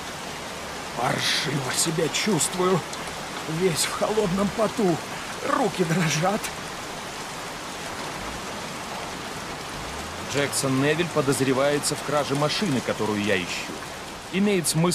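A man speaks calmly and quietly.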